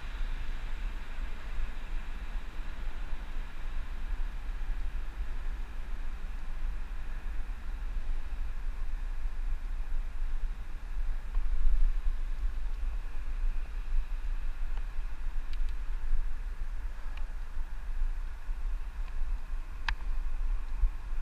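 Wind rumbles and buffets against a microphone.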